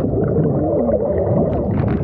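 Air bubbles gurgle up through the water.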